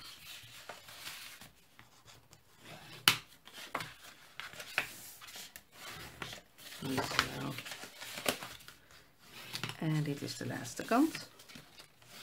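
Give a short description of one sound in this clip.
A bone folder scrapes along a crease in paper.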